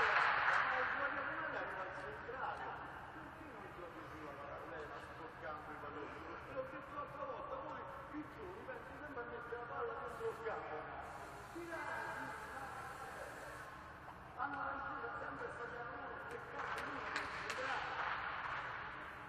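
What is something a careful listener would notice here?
Young men chat and call out to each other in a large echoing hall.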